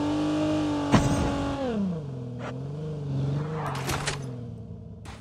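A vehicle engine drones and then drops in pitch.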